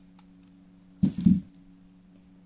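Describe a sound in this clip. A net bag of onions thumps down onto a table.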